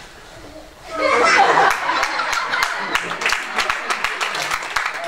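An audience claps and laughs.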